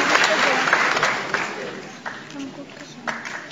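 A children's choir sings in a large hall.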